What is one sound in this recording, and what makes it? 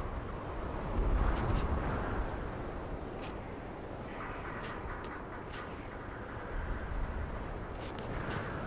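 Wind blows steadily and gusts outdoors.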